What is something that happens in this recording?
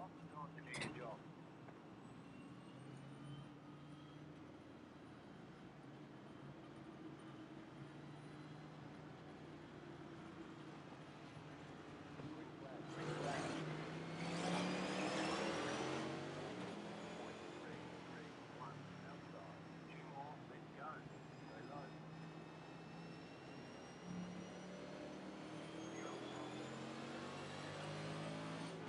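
A race car engine hums steadily at low speed, then revs up.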